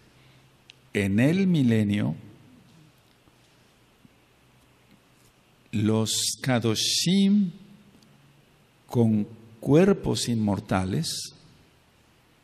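An elderly man chants slowly into a microphone, heard through a loudspeaker in a reverberant room.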